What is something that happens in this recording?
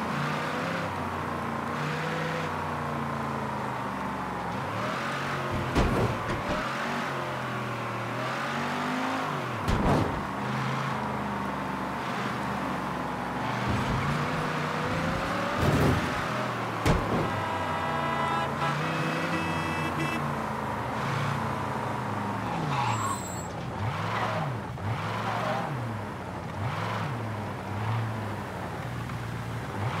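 A car engine hums and revs as the car drives along a street.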